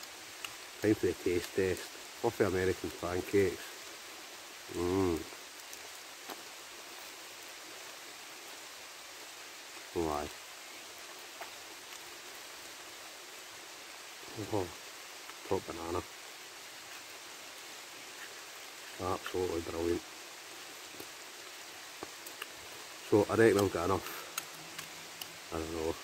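A middle-aged man talks calmly and close by, with long pauses.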